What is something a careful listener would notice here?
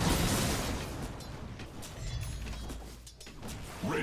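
Magic blasts and weapon strikes crackle and clash in a fight.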